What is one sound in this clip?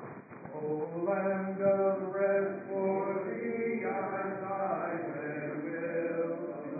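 A congregation sings together.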